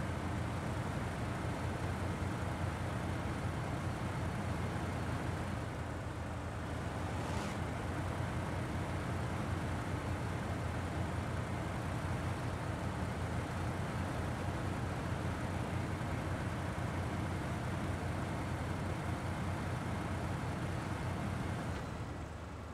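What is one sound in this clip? A heavy truck engine rumbles steadily as the truck drives slowly.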